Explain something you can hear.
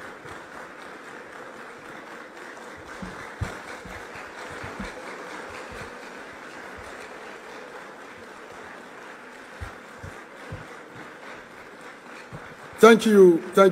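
A crowd claps and cheers in a large hall.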